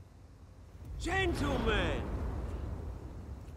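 A man speaks loudly and theatrically.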